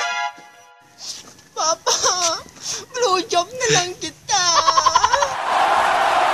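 A young man sobs and wails loudly.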